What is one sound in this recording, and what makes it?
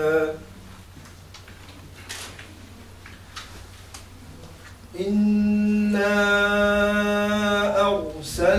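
A man chants in a long, drawn-out voice nearby.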